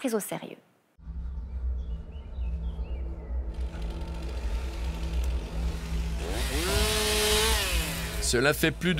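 A chainsaw engine runs and whines as it revs up.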